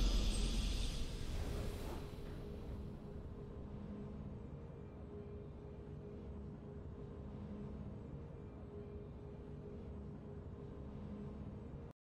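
Soft game music plays steadily.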